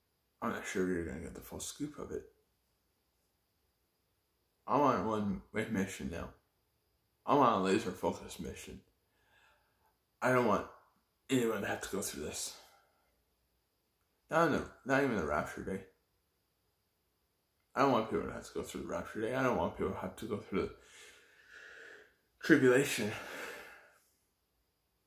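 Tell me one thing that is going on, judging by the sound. A young man speaks calmly and close, in short bursts with pauses.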